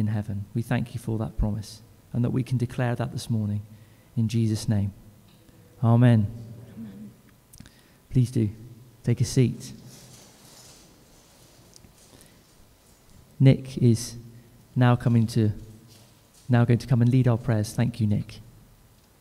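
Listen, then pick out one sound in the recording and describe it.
An acoustic guitar is strummed.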